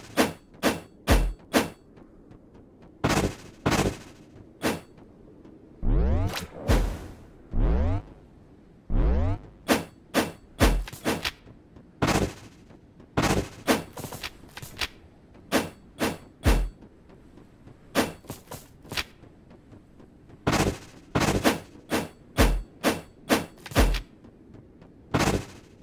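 A sword swishes and strikes again and again.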